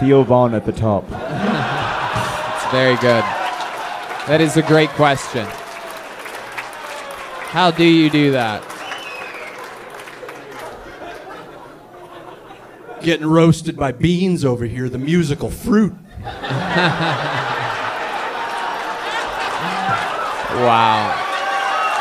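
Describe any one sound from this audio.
A man speaks loudly and animatedly into a microphone on stage.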